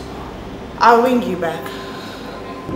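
A woman speaks briefly and close by.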